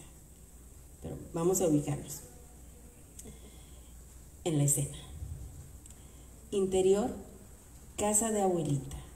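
A woman speaks through a microphone in short phrases with pauses.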